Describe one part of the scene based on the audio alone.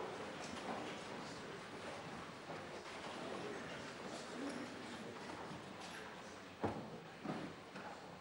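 A crowd murmurs softly in a large room.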